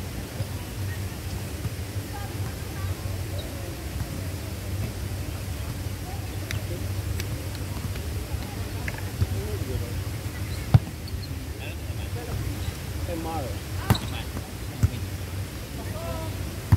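Young men call out to each other outdoors.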